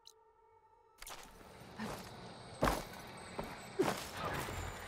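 Footsteps thud quickly on grass and rock.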